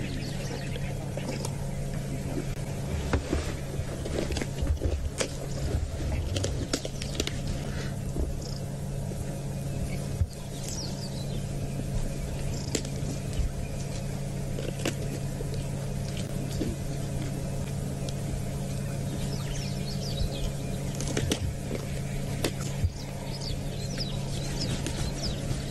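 Hyenas tear and crunch at a carcass up close.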